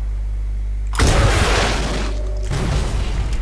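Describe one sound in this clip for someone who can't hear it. A rocket launcher fires with a loud whoosh and blast.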